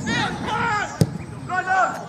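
A football thumps off a boot.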